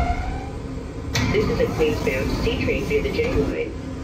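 Subway train doors slide open.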